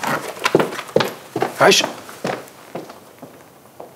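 Footsteps knock on a wooden floor.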